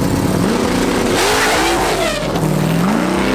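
A car's tyres screech as they spin and smoke.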